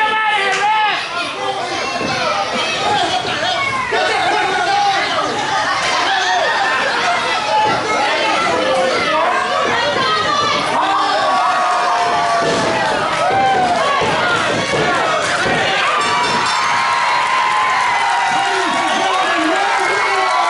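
A crowd of people shouts and cheers in an echoing hall.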